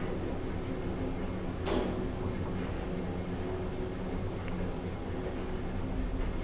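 An elevator hums steadily as it moves.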